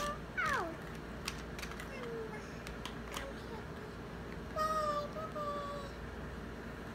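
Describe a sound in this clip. A young toddler babbles in a high voice close by.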